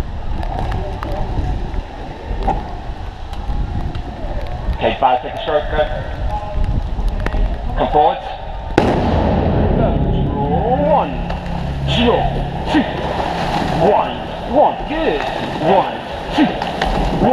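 Water rushes and laps against a rowing boat.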